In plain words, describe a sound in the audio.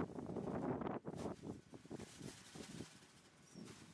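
A chain-link gate rattles and clanks.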